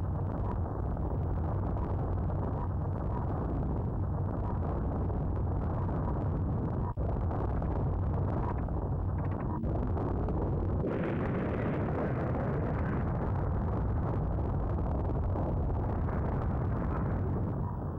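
A retro video game plays a deep, steady rumbling noise.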